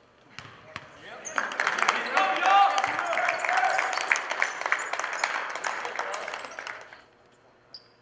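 Young men talk and shout together in a large echoing hall.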